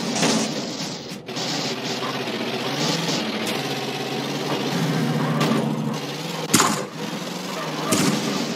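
A van engine hums steadily as the van drives along.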